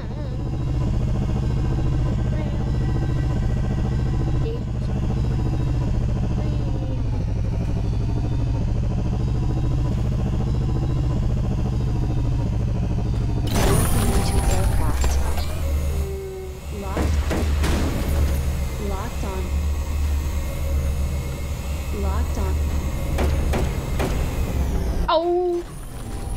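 A spacecraft engine hums steadily.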